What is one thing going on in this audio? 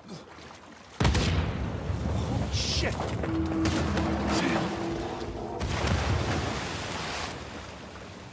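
A large wooden ship cracks, crashes and rumbles as it breaks apart.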